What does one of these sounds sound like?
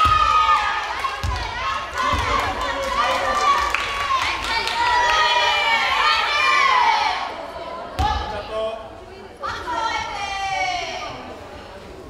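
Young women cheer and shout in an echoing hall.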